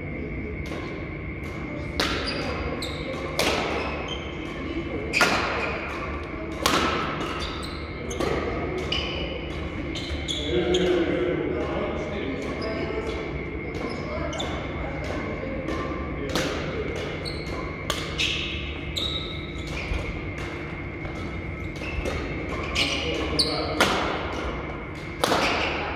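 Badminton rackets strike a shuttlecock back and forth with sharp pops in a large echoing hall.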